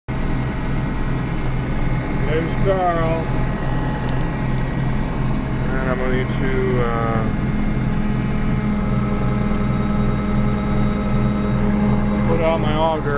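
A vehicle engine hums steadily while driving over rough ground.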